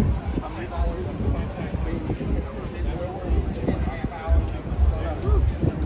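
A crowd of men and women chat nearby at a lively murmur.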